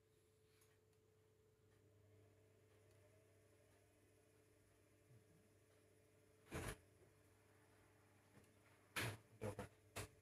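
A washing machine hums quietly and steadily.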